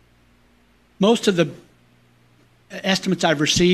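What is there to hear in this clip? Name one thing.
A man speaks loudly and clearly into a microphone.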